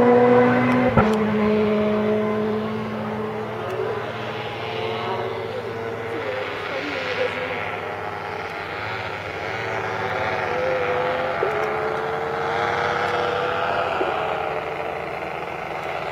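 A paramotor engine drones overhead.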